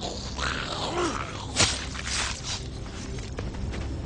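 A knife stabs into flesh with a wet thud.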